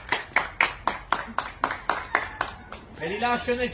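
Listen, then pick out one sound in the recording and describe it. People clap their hands in quick applause.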